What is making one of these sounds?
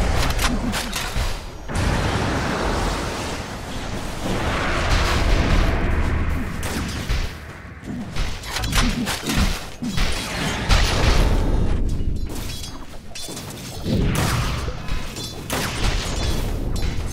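Game spell effects crackle and boom during a battle.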